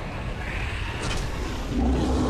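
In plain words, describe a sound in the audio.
A large beast roars loudly.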